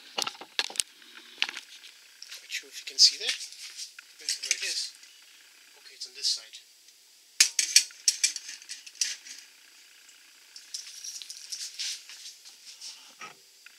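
Metal clinks against a keg lid.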